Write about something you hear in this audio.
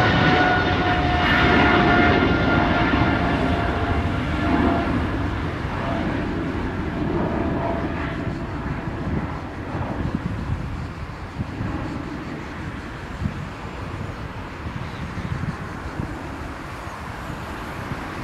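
A jet airliner roars loudly overhead with a high engine whine, slowly fading as it climbs away.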